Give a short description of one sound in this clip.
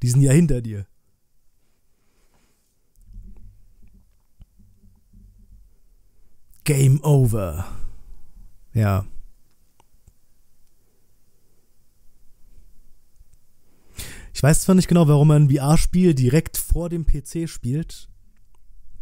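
A man talks calmly and close into a microphone, in short bursts with pauses.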